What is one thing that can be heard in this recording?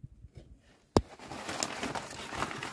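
Plastic sheeting rustles and crinkles close by.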